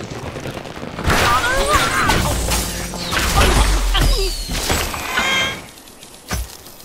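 Wooden blocks crash and tumble as a tower collapses.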